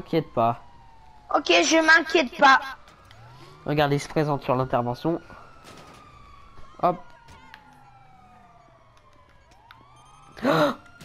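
A police siren wails nearby.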